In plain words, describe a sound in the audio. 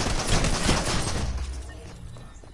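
A gun fires rapidly in a burst.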